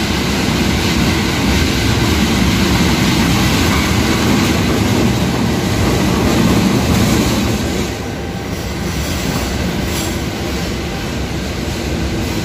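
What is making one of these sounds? Train wheels clatter and squeal on the rails as carriages roll by.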